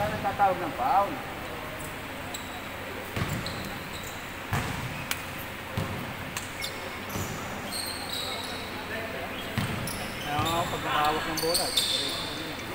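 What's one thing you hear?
Young men shout to each other across the court.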